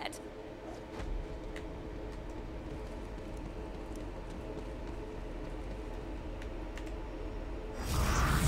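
A low steady hum drones.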